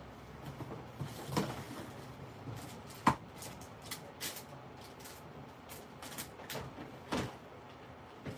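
Cardboard boxes are set down on a table with light knocks.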